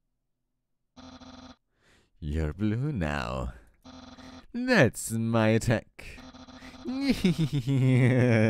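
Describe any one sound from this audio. A video game's dialogue text chirps in rapid, steady beeps.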